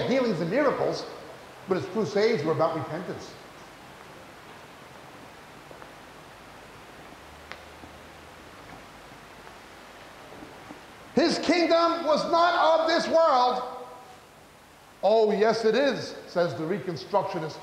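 A middle-aged man speaks steadily into a microphone, with long pauses.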